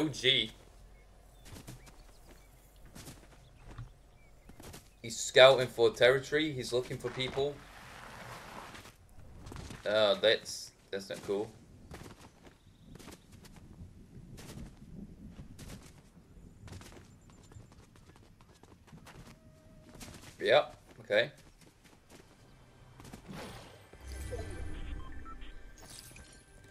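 Footsteps run over grass and then across a wooden floor.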